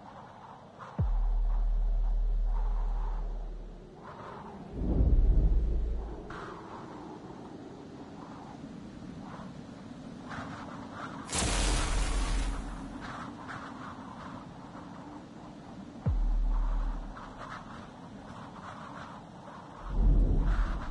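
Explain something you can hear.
A spaceship hovers with deep, throbbing rumbles that swell and fade.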